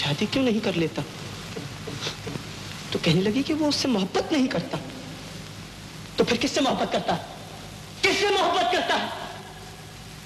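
A young man speaks with animation, his voice rising and falling.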